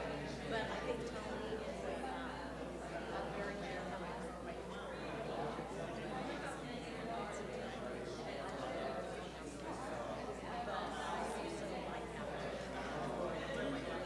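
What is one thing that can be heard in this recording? A young woman speaks steadily through a microphone in a large echoing hall.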